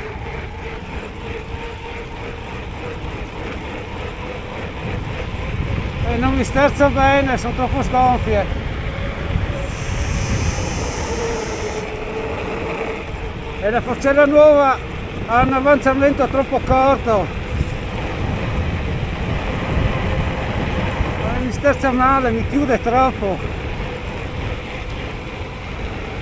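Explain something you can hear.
Bicycle tyres hum on an asphalt road.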